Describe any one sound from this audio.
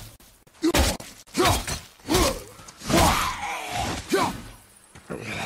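A man grunts with effort during combat.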